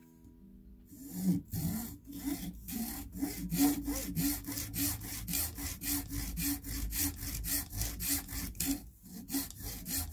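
A small hand saw cuts back and forth through a thin branch in a quick, steady rhythm.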